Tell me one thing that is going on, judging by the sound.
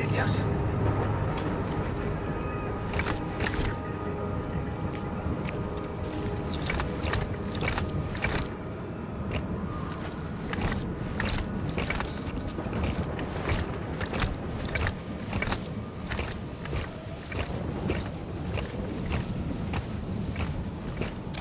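A strong wind howls and roars steadily outdoors.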